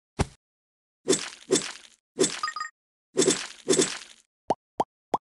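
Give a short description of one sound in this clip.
Wet game splats burst in quick succession.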